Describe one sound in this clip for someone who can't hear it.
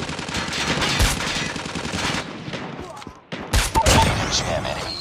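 Loud rifle shots boom in bursts.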